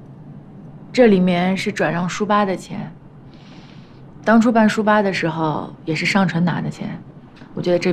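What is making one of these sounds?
A woman speaks calmly and firmly, close by.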